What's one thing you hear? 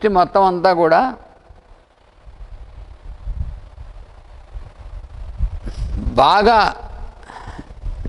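An elderly man chants slowly into a microphone, with pauses between phrases.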